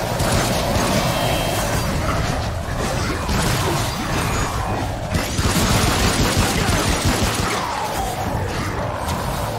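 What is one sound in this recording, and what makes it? Gunshots ring out in sharp bangs.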